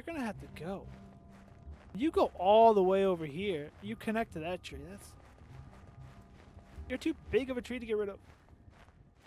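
A young man talks casually and close to a microphone.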